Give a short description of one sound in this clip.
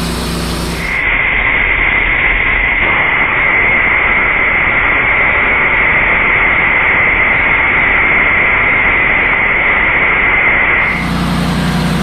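A band saw blade whines loudly as it cuts through a log.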